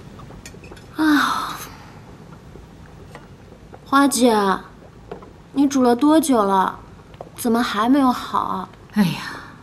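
A young woman calls out and asks questions nearby.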